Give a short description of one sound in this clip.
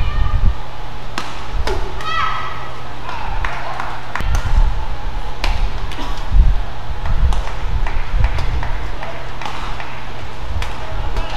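Shuttlecocks are struck with sharp racket pops in a rapid rally.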